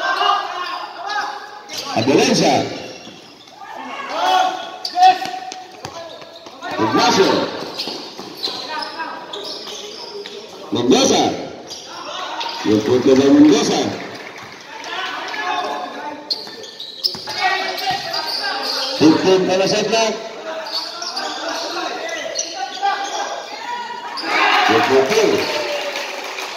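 Young men shout and call out across an echoing court.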